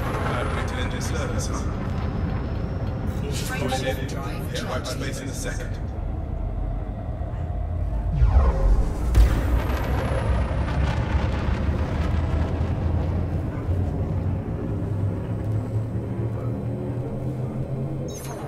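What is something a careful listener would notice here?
A spacecraft engine rumbles low and steadily, swelling with a deep whoosh partway through.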